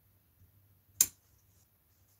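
A paintbrush is set down on a table with a sharp click.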